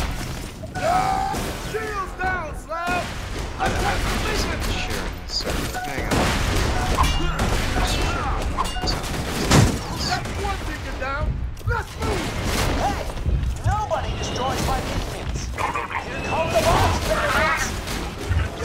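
Explosions burst with heavy thuds.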